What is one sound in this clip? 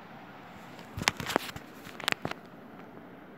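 A phone is bumped and rubbed close by.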